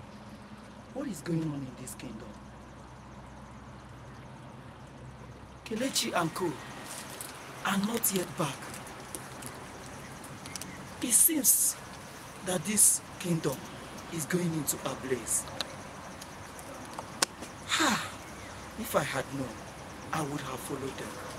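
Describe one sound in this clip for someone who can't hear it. A young woman speaks close by, pleading with emotion.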